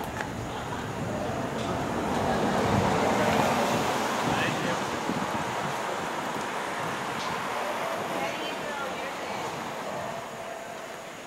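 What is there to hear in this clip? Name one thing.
Cars drive past on a street one after another, rising and fading.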